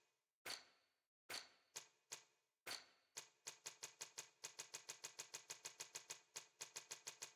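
Short menu clicks tick, first sparse and then in a fast run.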